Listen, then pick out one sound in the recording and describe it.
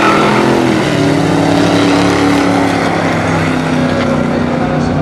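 Powerful car engines roar loudly as they accelerate down a track.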